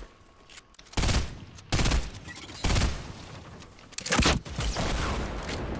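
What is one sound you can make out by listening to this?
Gunshots boom.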